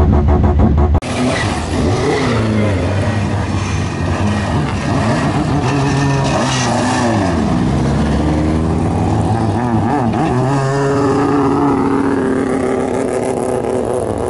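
Race car engines rev and rumble past outdoors, one after another.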